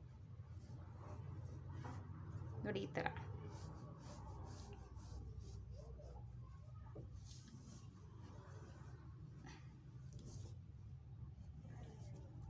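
A pencil draws lines along cloth.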